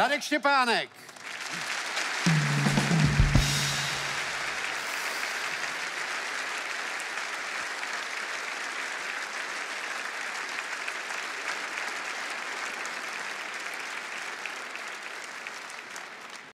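A large audience claps loudly in a big echoing hall.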